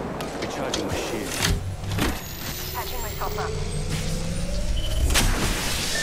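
A shield battery charges with a rising electric whine.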